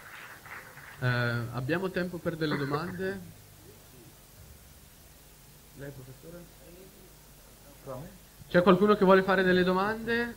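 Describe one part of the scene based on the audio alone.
A young man speaks calmly into a microphone, heard through a loudspeaker.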